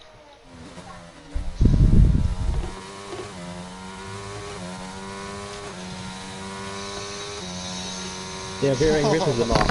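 A racing car engine whines at high revs as the car speeds along.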